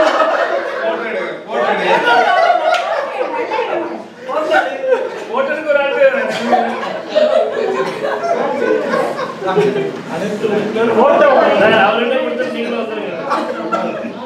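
A man speaks up loudly to a group.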